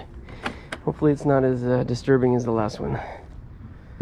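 Metal latches click open on a case.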